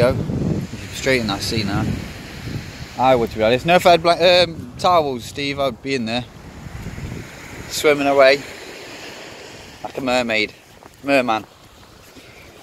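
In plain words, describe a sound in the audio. A young man talks with animation close by, outdoors in wind.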